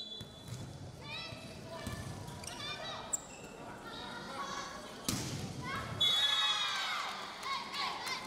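Young women shout and call out to each other on a court.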